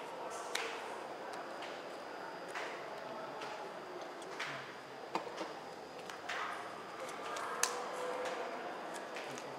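Playing cards slide and tap on a soft mat.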